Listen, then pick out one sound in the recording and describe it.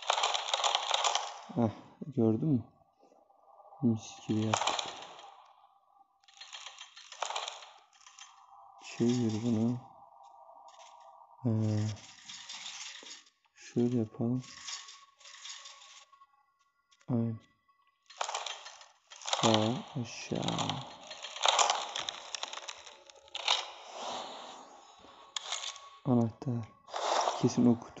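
A wooden puzzle mechanism slides and clunks into place.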